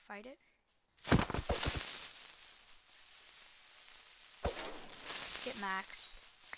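A sword strikes a creature with sharp thuds.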